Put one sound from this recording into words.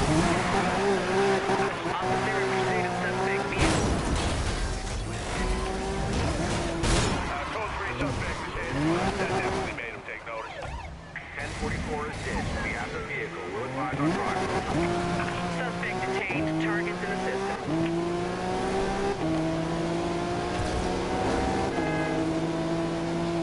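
A car engine roars and revs, shifting up through the gears.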